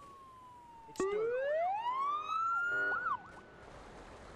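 An ambulance siren wails, rising and falling in pitch.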